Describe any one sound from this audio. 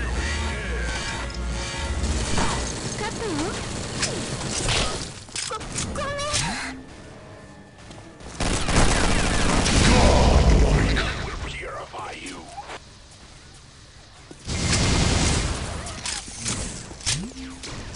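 Guns fire rapidly in a game with loud blasts.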